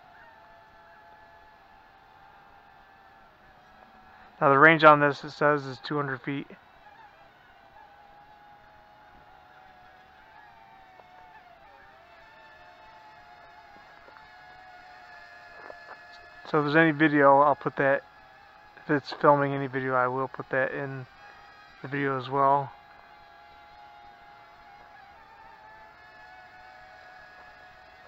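A small drone's motors whine steadily in flight, rising and falling slightly in pitch.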